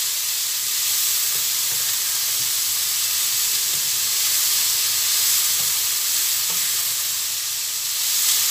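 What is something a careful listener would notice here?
Food sizzles and hisses in a hot frying pan.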